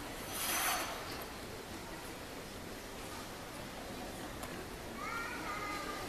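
Figure skate blades scrape across ice in a large echoing arena.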